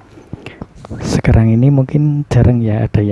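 A young woman speaks clearly and close into a microphone.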